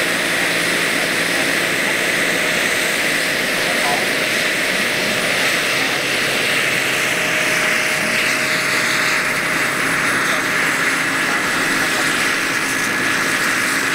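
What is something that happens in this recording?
The rotor blades of a large radio-controlled model helicopter whir as the helicopter lifts off and hovers.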